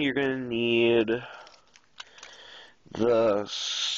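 Small metal tops clink softly as a hand handles them.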